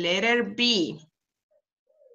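A woman speaks clearly through an online call.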